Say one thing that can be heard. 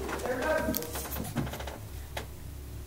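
A man speaks in a low, hushed voice close by.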